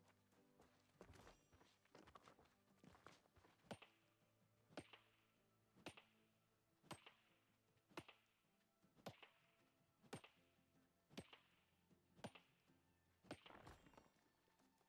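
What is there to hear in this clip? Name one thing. A hammer strikes rock again and again in a steady rhythm.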